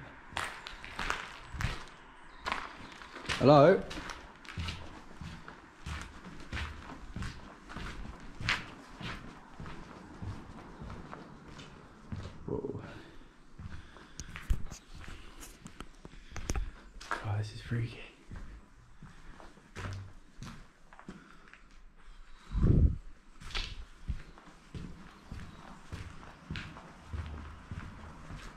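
Footsteps crunch over gritty debris on a hard floor.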